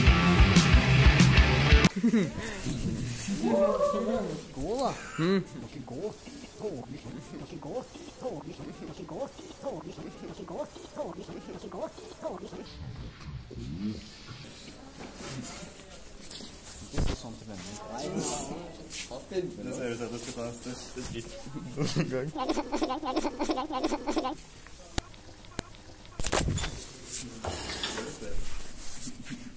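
Young men talk and laugh close by.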